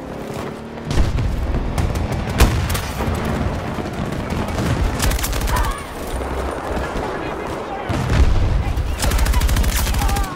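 Rapid gunfire bursts in quick, loud rattles.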